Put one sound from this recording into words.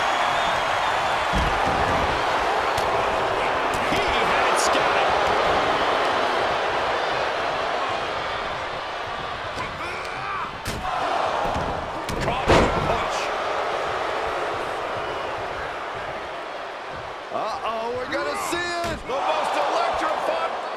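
An arena crowd roars and cheers.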